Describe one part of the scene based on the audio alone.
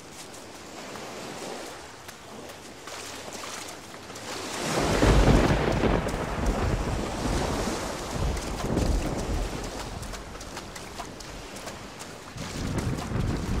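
Waves wash gently onto a shore.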